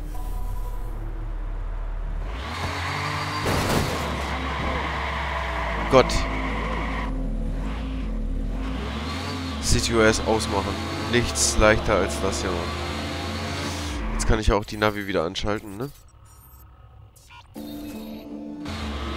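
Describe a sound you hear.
A car engine roars as the car drives.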